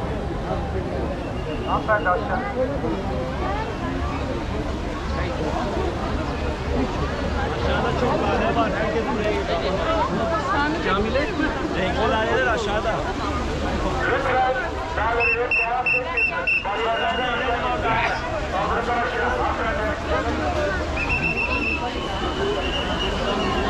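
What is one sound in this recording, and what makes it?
A large crowd chatters all around outdoors.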